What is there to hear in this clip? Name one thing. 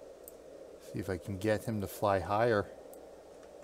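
A man speaks briefly and casually into a microphone.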